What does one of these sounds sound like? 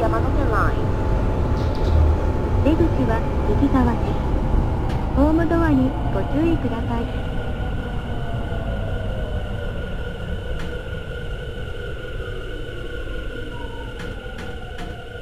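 A train rumbles along the rails.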